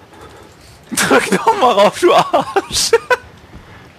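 A metal lift gate rattles and clanks shut.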